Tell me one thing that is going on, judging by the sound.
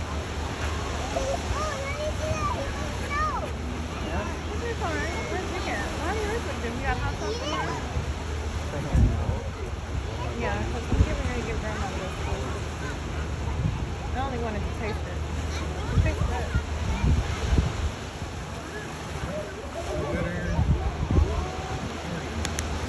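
Waves surge and wash against rocks.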